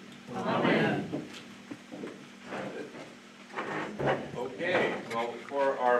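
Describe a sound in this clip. An older man reads aloud calmly into a microphone.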